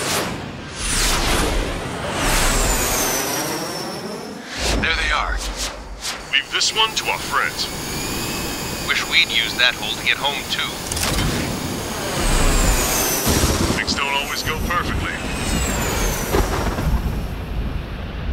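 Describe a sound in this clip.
Missiles whoosh by at high speed.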